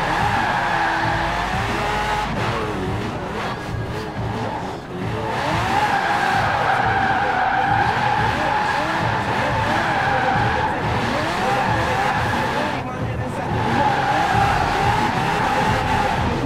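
A limousine's engine revs hard.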